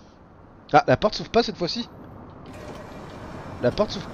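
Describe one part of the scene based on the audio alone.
Bus doors hiss open.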